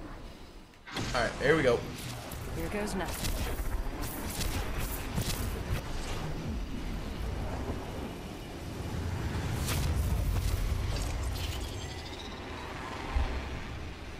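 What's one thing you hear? Wind rushes past loudly during a fast glide through the air.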